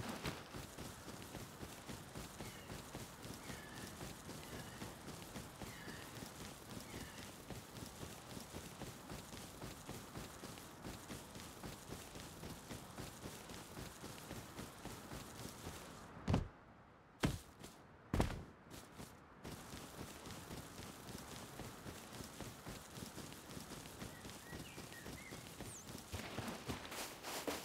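Quick footsteps run steadily through grass.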